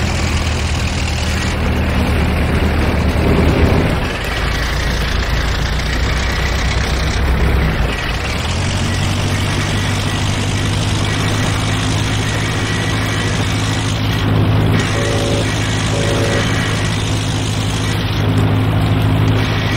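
A vehicle engine rumbles steadily as it drives over rough ground.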